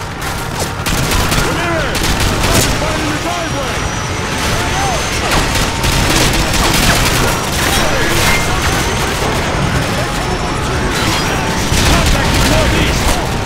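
Rifle shots crack in rapid bursts close by.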